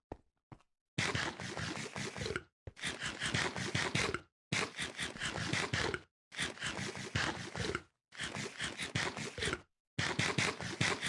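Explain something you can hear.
Loud crunchy chewing comes in repeated bursts.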